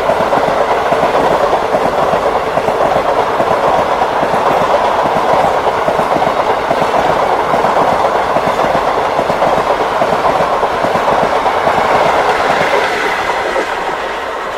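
A passenger train rattles and clatters past close by on the tracks.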